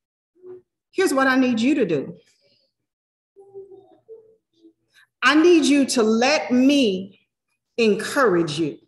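A woman speaks with animation into a microphone, heard through an online call.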